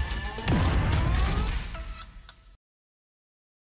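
Explosive game sound effects boom and crackle.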